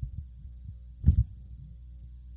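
A microphone thumps as it is handled.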